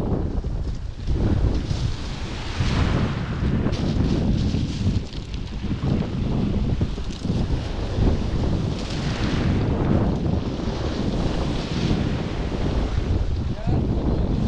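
Small waves wash onto a pebble shore and draw back over the stones.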